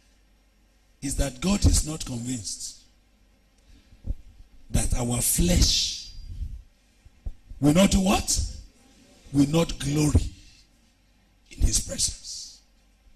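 A man preaches forcefully into a microphone, in bursts with pauses, heard through a loudspeaker.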